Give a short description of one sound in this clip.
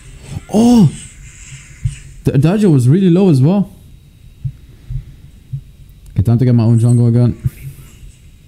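A young man speaks into a microphone in short bursts.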